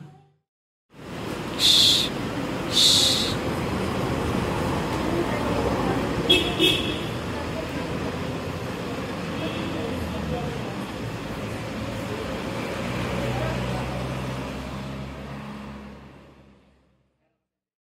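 An SUV engine idles, then the vehicle slowly pulls out and drives away.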